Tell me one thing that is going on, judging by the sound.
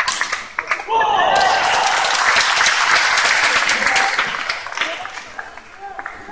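A crowd applauds in a large hall.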